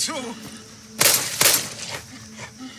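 A pistol fires two loud shots in quick succession.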